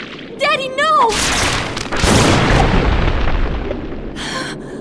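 A loud magical blast roars and crackles.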